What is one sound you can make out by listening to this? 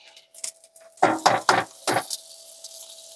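A spatula scrapes and clatters in a frying pan.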